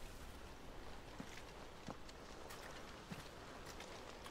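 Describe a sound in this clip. Footsteps crunch softly on a forest floor.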